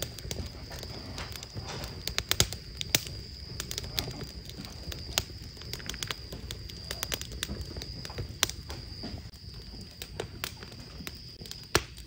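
Light taps and clicks sound close by on a hard surface.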